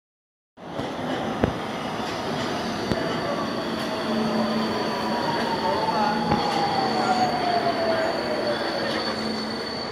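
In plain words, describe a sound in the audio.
A metro train rumbles into an echoing underground station.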